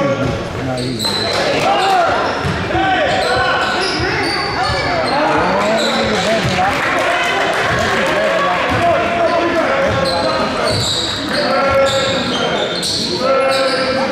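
Sneakers squeak sharply on a hardwood floor.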